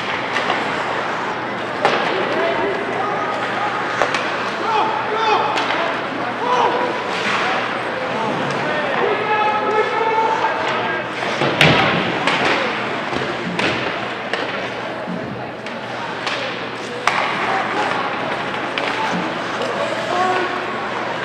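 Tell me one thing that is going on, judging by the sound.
Spectators chatter and call out in an echoing rink.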